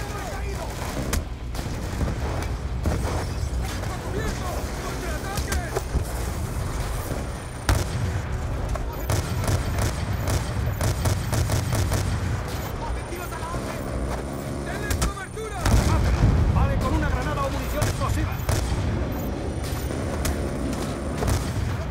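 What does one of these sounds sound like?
A rifle fires loud shots in bursts.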